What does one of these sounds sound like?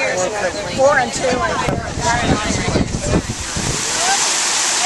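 A crowd of adults chatters outdoors.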